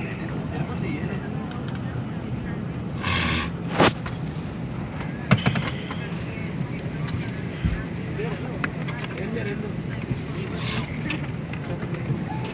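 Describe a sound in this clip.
Many passengers chatter at once in a low, steady murmur.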